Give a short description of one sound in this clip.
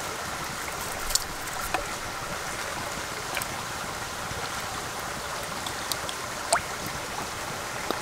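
Vegetables drop into water in a pot.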